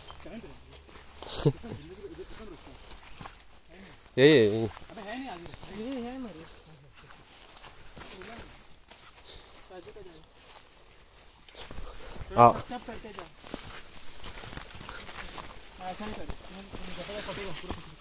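Young adults talk casually nearby.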